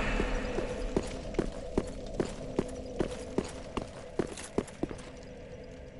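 Heavy armoured footsteps clatter steadily on stone.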